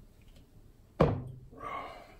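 A bottle knocks down onto a counter.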